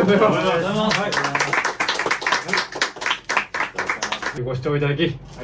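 People clap their hands in quick applause.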